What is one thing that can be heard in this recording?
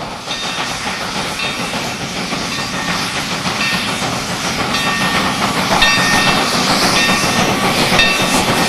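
A steam locomotive chugs heavily in a steady rhythm, slowly growing louder.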